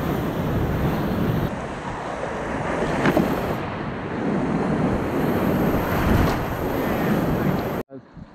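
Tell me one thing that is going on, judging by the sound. A paddle splashes into the water.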